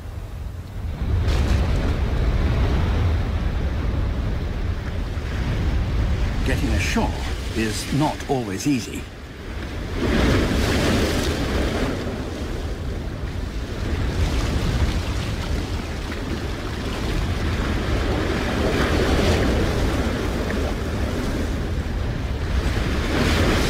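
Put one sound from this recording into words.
Waves crash and surf churns loudly against rocks.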